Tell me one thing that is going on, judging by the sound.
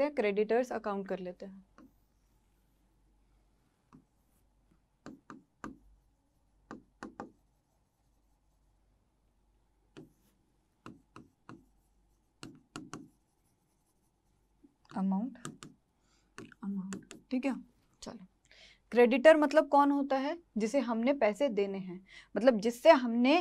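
A young woman speaks clearly and calmly, close to a microphone.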